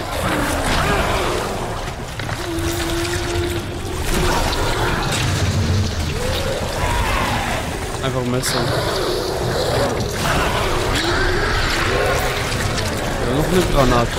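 A monster growls and snarls wetly, up close.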